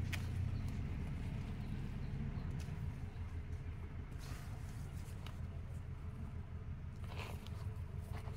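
Leaves rustle as a hand pushes through a plant.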